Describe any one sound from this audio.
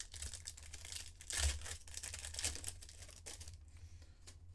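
A foil wrapper crinkles and tears as a pack is opened by hand.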